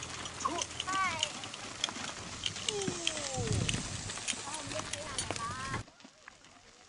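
Cart wheels roll and creak over gravel.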